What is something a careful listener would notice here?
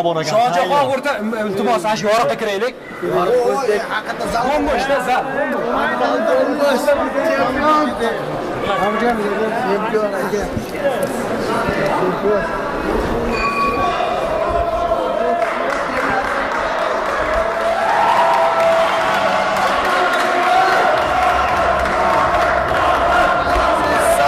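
A crowd of young men talk and call out all around, close by.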